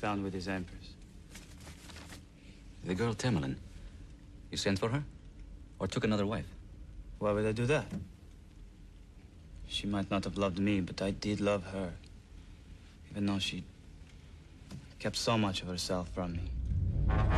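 A man speaks quietly in a low voice.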